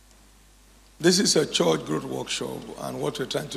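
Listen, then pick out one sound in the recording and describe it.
A man speaks loudly through a microphone in a large echoing hall.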